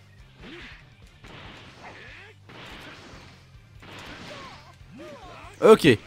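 Energy blasts whoosh and crackle in bursts.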